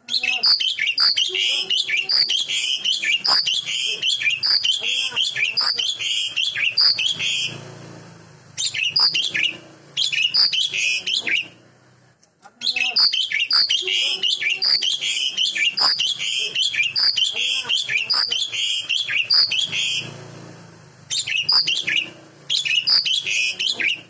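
A pied myna sings loud, rapid whistling calls.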